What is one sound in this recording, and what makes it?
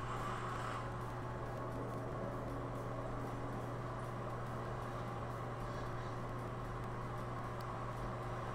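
A low, steady droning hum of video game background music plays throughout.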